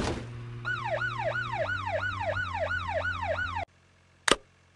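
A police siren wails, rising and falling quickly.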